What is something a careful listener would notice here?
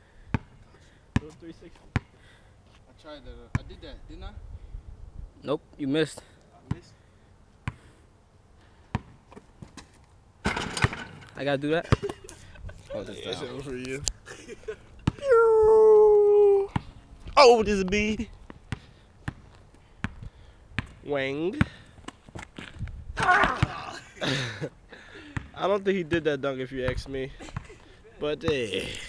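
A basketball bounces on pavement outdoors.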